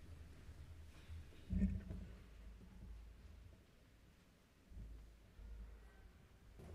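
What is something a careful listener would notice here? Footsteps shuffle softly across a carpeted floor in a large, quiet hall.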